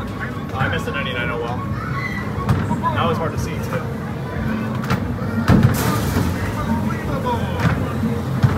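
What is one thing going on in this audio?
A busy arcade hums with a steady din of game machines.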